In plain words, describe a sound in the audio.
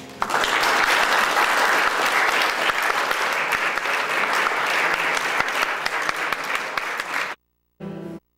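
An organ plays loudly in an echoing room, then stops abruptly.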